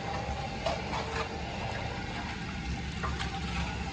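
Water drips and splashes into a bowl.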